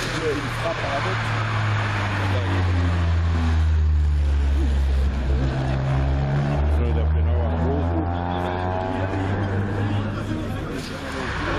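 A rally car engine roars loudly as it speeds past and revs through the gears.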